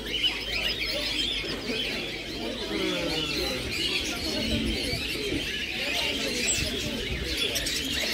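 Many small caged birds chirp and twitter busily nearby.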